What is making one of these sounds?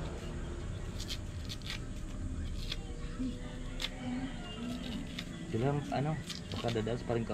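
A knife taps and scrapes.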